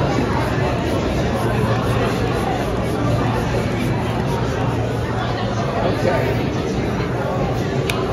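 A rubber balloon squeaks as a man twists it.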